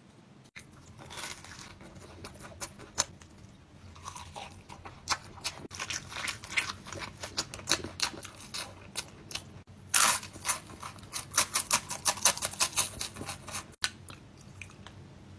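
A young man crunches loudly on food while chewing.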